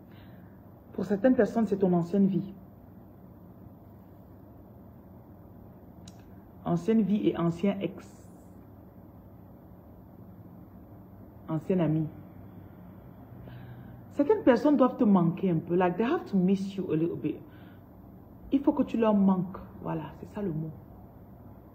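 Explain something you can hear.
A woman speaks close to the microphone in short bursts with long pauses.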